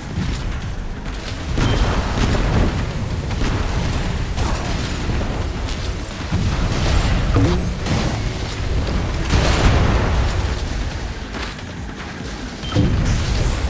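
Water splashes and rushes under a speeding boat.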